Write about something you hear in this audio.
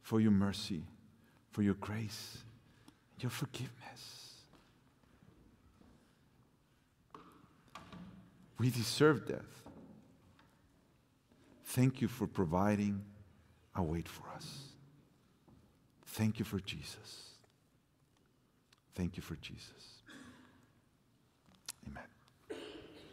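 A middle-aged man speaks slowly and deliberately into a microphone in a reverberant hall, with pauses between phrases.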